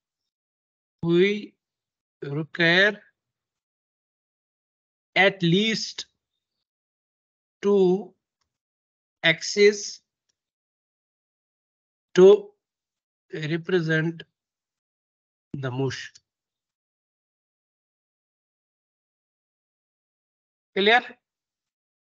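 A young man speaks calmly in short phrases through an online call microphone, with long pauses.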